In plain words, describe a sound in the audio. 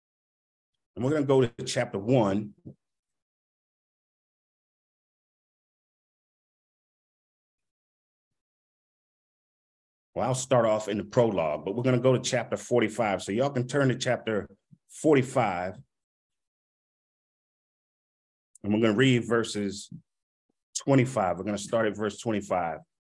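A man speaks with animation into a close microphone, in bursts with pauses.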